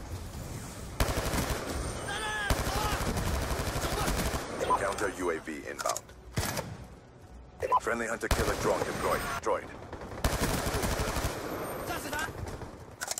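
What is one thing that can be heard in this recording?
Rapid gunfire bursts ring out in quick succession.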